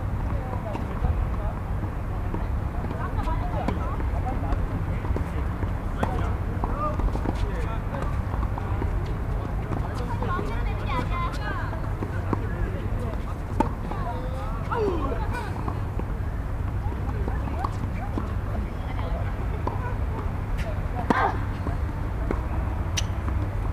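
Tennis rackets strike a ball back and forth outdoors.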